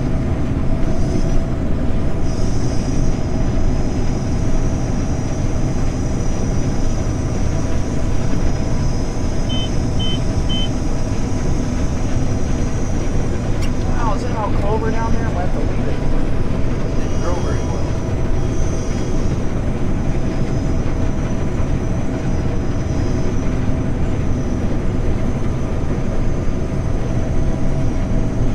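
A combine harvester engine drones loudly and steadily inside the cab.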